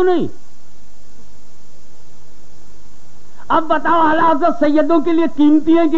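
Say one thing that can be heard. An elderly man speaks with animation into a microphone.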